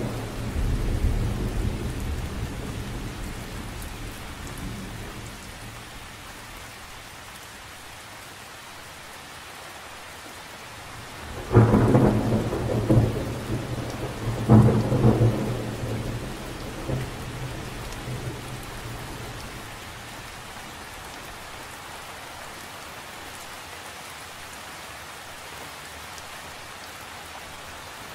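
Rain patters steadily on the surface of a lake.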